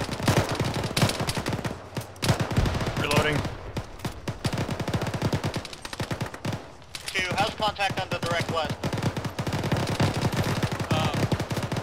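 A heavy machine gun fires rapid bursts close by.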